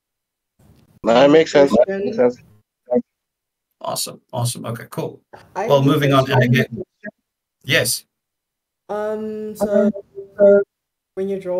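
A man speaks casually through an online call.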